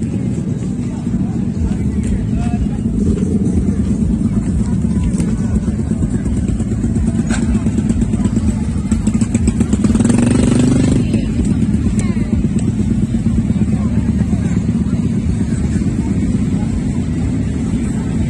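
A motorcycle engine idles with a deep, steady rumble.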